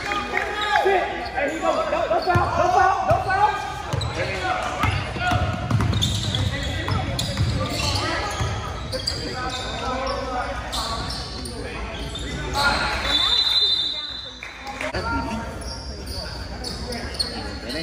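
Sneakers squeak on a wooden court in an echoing gym.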